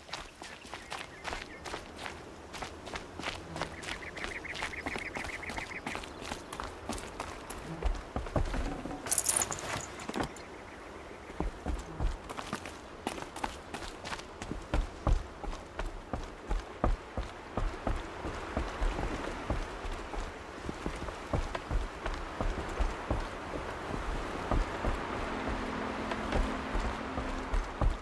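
Footsteps run quickly over dirt and wooden planks.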